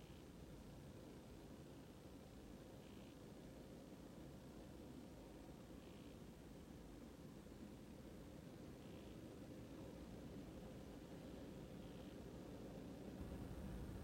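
A vehicle engine idles with a low, steady rumble.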